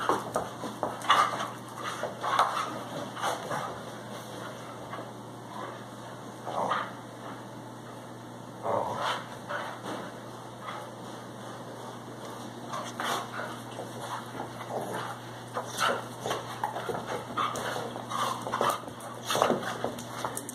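Two dogs play-fight, growling and snarling close by.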